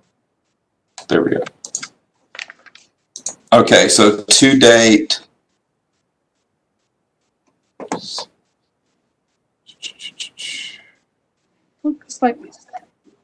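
A man speaks in bursts over an online call.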